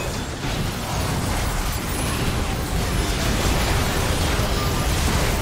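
Video game spell blasts and impacts crackle and boom in a busy battle.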